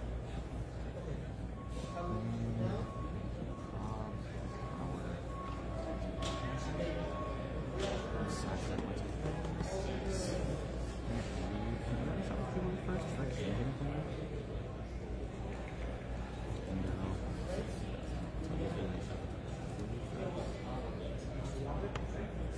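Many people chatter and talk all around in a busy indoor hall.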